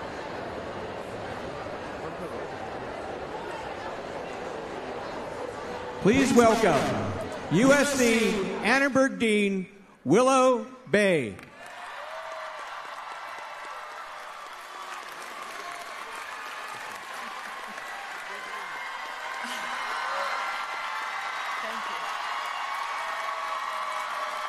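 A large crowd cheers and applauds in a big echoing tent.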